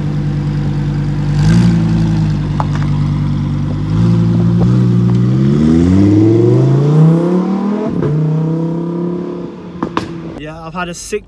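A sports car engine rumbles loudly, then roars and rises in pitch before fading into the distance.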